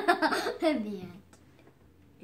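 A young girl laughs loudly close by.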